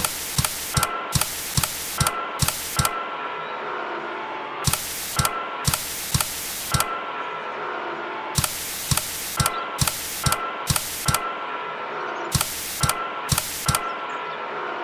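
Bursts of television static hiss on and off.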